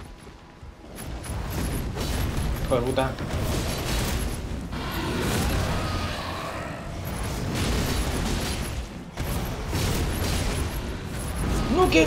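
Metal blades slash and clang in quick, heavy blows.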